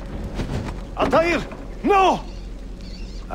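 A man shouts in alarm, close by.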